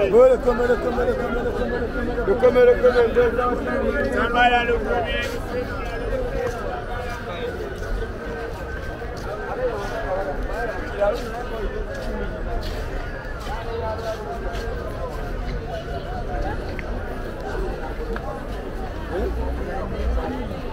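A busy outdoor market crowd of men and women chatters all around.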